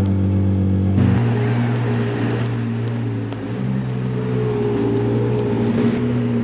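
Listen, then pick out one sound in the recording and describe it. A sports car engine revs as the car pulls away.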